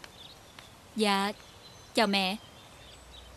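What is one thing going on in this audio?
A young woman exclaims loudly nearby.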